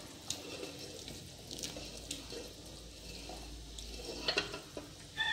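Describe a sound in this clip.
Metal tongs clink against a pot.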